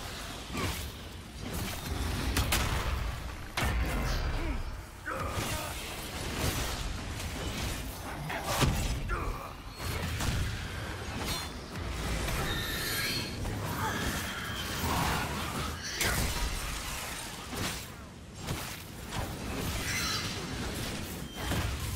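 Weapons strike and clash with sharp impacts.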